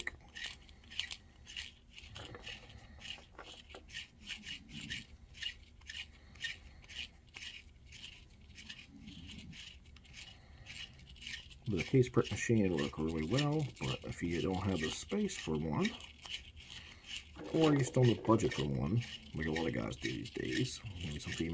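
Small clicks and scrapes come from a tool being worked by hand.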